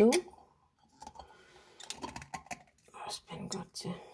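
A metal jar lid is screwed onto a glass jar with a light scraping.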